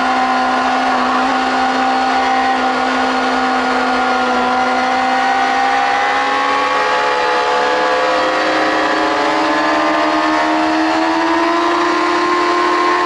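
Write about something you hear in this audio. A motorcycle engine roars loudly up close, its pitch rising as it speeds up.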